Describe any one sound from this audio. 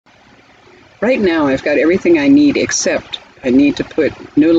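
An elderly woman speaks calmly and close by.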